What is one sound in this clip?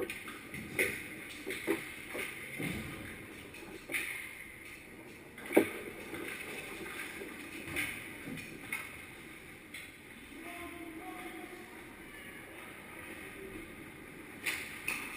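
Skates scrape on ice, echoing in a large rink.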